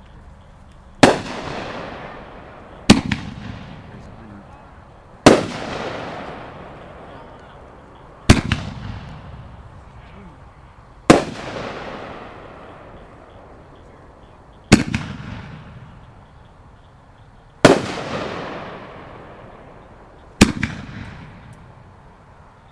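Fireworks burst with loud booms that echo and rumble away.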